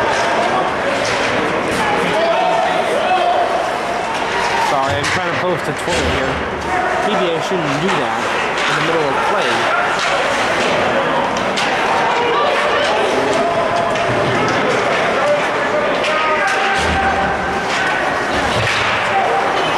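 Skates scrape and hiss across ice in a large echoing arena.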